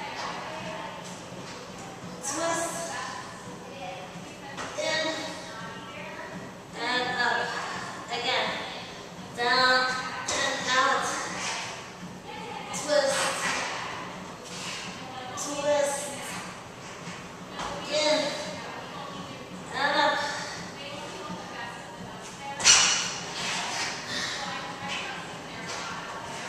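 A young woman talks with energy, giving instructions.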